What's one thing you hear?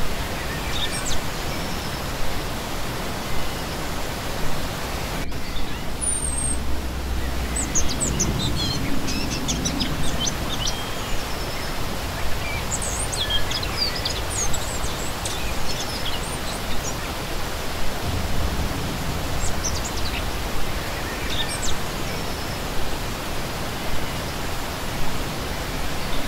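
A shallow stream rushes and splashes steadily over rocks.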